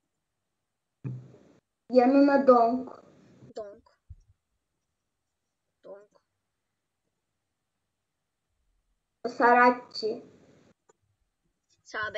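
A young boy speaks close to a microphone in short bursts with pauses.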